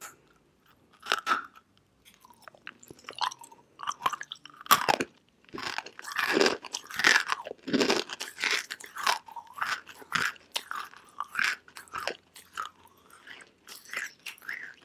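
A young woman chews loudly and crunchily, close to the microphone.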